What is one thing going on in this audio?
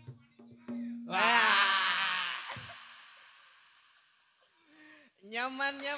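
Frame drums are struck with the hands.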